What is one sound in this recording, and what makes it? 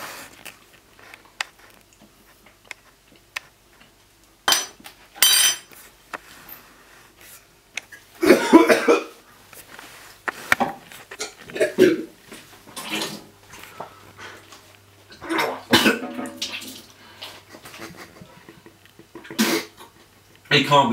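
A young man speaks quietly and close by.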